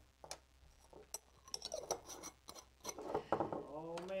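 Small jars clink on a table.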